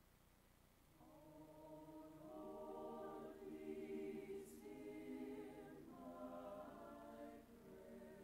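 A choir sings together in a large hall.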